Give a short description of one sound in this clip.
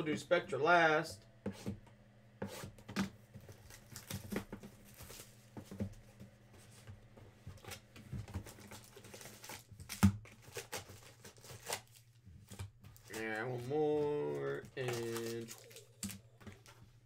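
A cardboard box scrapes and knocks as hands handle it.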